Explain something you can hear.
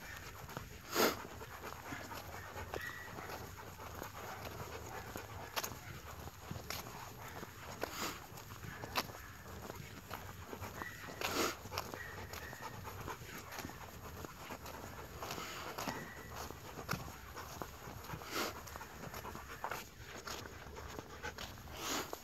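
Footsteps scuff on asphalt at a steady walking pace.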